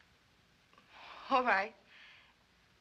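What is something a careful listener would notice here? A young woman answers quietly nearby.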